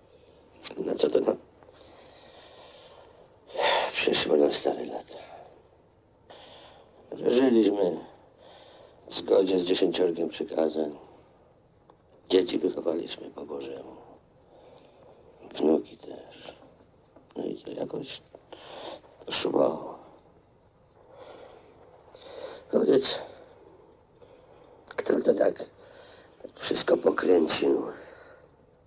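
A middle-aged man speaks quietly and seriously close by.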